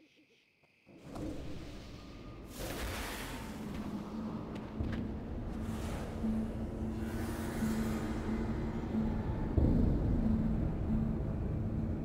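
Spell effects whoosh and crackle in a game.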